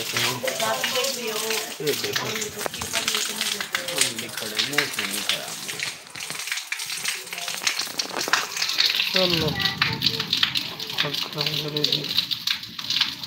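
Rain patters steadily on wet ground outdoors.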